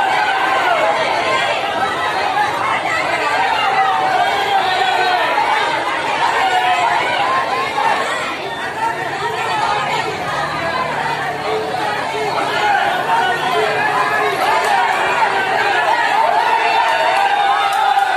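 A large crowd of women and men chatters and shouts loudly outdoors.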